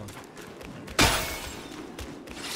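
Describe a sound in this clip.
A heavy blow lands with a sharp thud.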